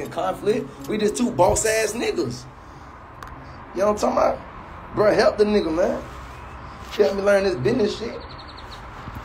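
A young man talks casually and close up into a phone microphone.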